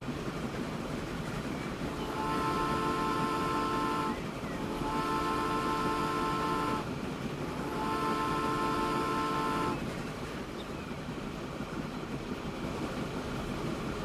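A steam locomotive chugs steadily along the rails.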